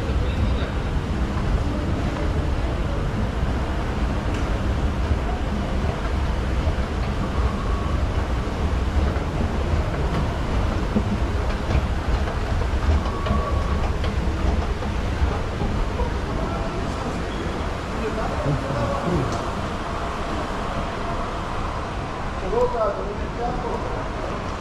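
A large echoing hall murmurs with a steady background noise.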